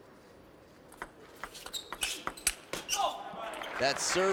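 A table tennis ball clicks rapidly back and forth off paddles and a table.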